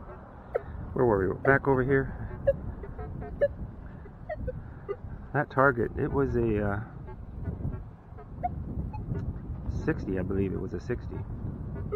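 A metal detector gives warbling electronic tones.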